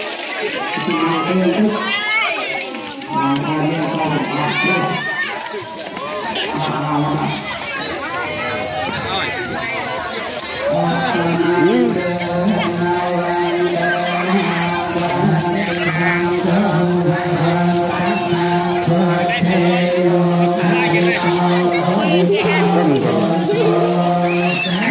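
A crowd of women and children chatter and call out nearby.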